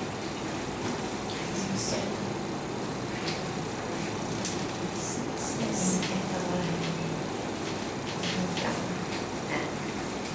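A man speaks calmly, a little way off.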